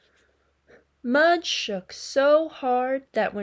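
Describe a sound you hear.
A young woman reads aloud expressively, close to a microphone.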